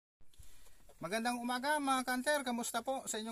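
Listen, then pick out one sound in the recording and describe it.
A man speaks calmly and close by.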